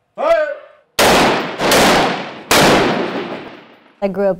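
Rifle shots ring out loudly with echoing reverberation.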